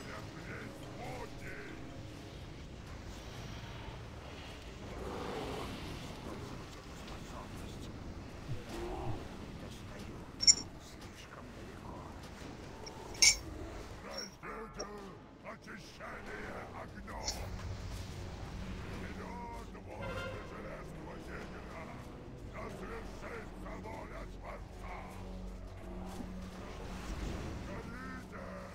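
Fiery spells whoosh and crackle in a battle.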